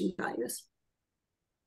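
A woman briefly speaks over an online call.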